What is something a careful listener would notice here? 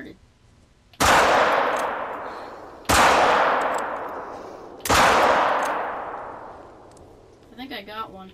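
A rifle fires three loud shots that echo and fade slowly.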